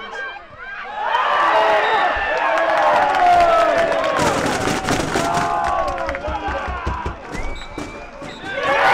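A crowd of spectators cheers and shouts in the distance.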